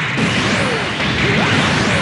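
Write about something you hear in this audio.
A laser beam fires with a buzzing hum.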